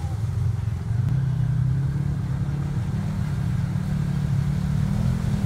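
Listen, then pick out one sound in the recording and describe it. An off-road vehicle's engine rumbles loudly as it labours through deep water.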